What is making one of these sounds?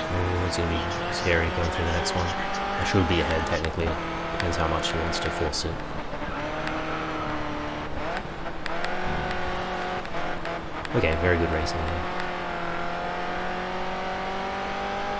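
A racing car engine roars at high revs, shifting pitch as it speeds up and slows down.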